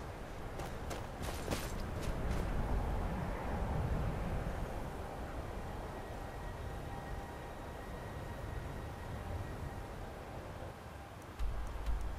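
Wind blows in a snowstorm.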